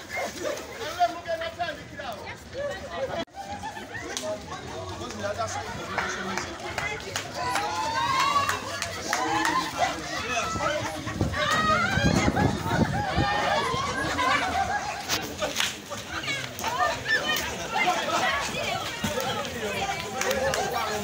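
A crowd of men and boys shouts and cheers excitedly outdoors.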